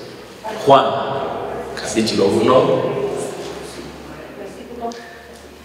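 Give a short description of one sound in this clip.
A man speaks calmly into a close microphone, in a slightly echoing room.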